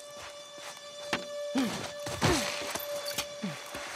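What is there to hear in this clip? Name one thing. A body thuds onto the ground.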